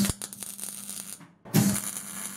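A welder crackles and sputters against metal.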